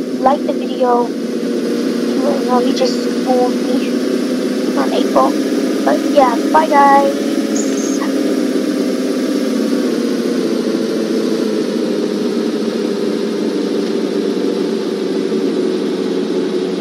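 A video game truck engine hums as the truck drives.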